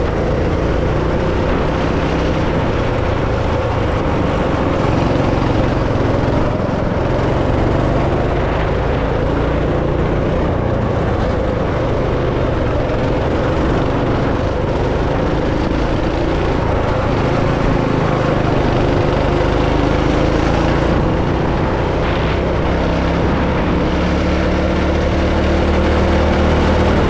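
A small kart engine drones loudly up close, rising and falling in pitch as it speeds up and slows down.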